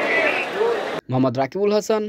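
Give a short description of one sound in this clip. A man preaches with fervour through a microphone and loudspeakers.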